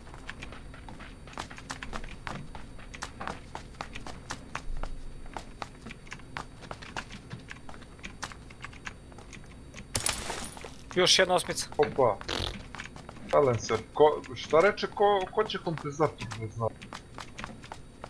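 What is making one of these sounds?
Footsteps tap quickly across a wooden floor.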